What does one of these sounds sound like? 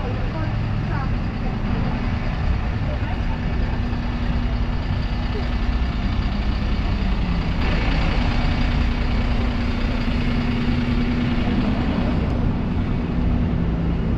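Bus engines idle and rumble nearby.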